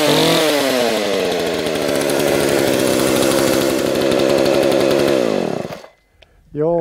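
A chainsaw engine runs loudly, then winds down and stops.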